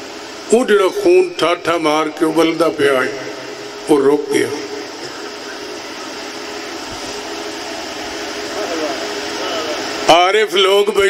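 A man speaks forcefully into a microphone over loudspeakers, in a reverberant space.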